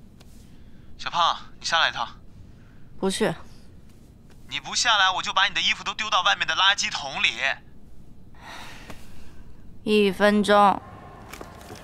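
A young woman speaks calmly into a phone, close by.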